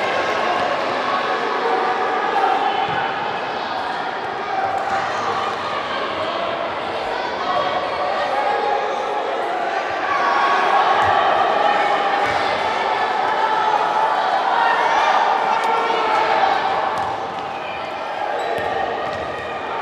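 A ball thuds as it is kicked.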